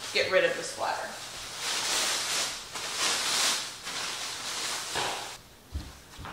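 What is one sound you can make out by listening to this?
Plastic sheeting rustles and crinkles.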